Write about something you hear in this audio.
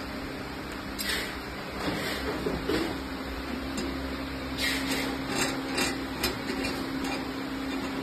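A metal cone knocks against a metal hub.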